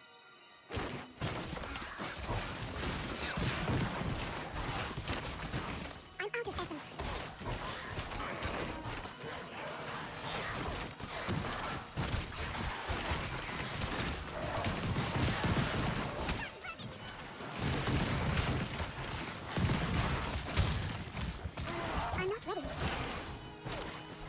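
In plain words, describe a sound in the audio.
Blades slash and spells burst in a frantic battle.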